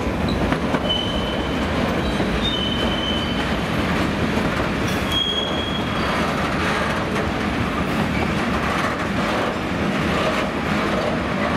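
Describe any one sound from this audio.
A freight train rumbles and clatters past along the tracks.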